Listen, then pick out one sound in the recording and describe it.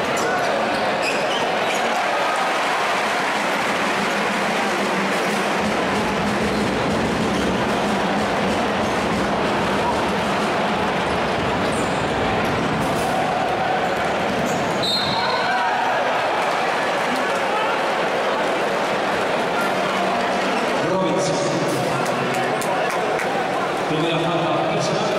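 A large crowd roars and cheers in an echoing arena.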